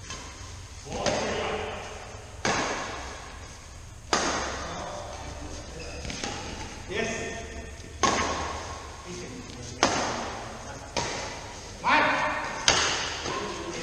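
Badminton rackets smack a shuttlecock, ringing in a large echoing hall.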